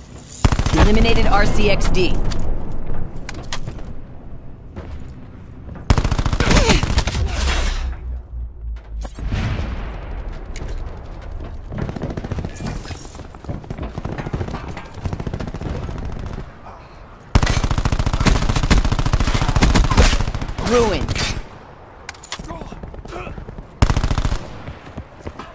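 An automatic rifle fires in bursts.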